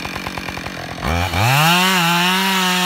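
A chainsaw engine revs up loudly to a high whine.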